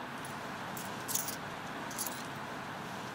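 Coins clink in a hand.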